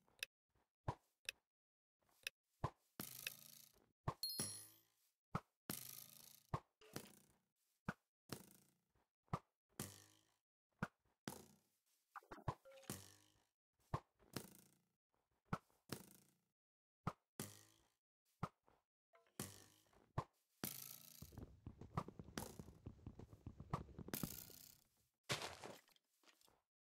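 Fireworks pop and burst again and again, each followed by a short crackle.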